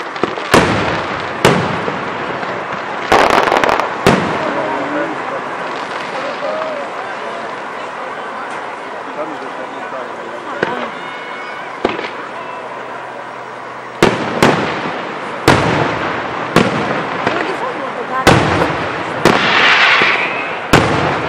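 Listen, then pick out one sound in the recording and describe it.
Fireworks boom and bang loudly outdoors.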